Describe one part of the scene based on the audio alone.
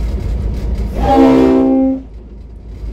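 A train horn blares loudly.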